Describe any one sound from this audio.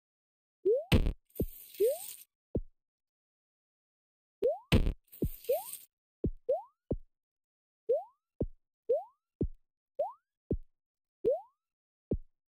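Soft thuds sound as a game character lands.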